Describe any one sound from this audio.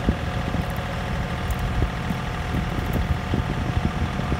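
A log splitter's wedge creaks and cracks through wood.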